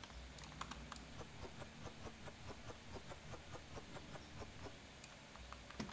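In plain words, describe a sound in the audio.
Small items are placed on a shelf with soft clunks.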